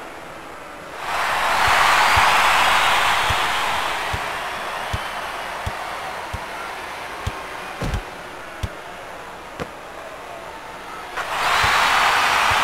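A large crowd cheers and roars in an arena.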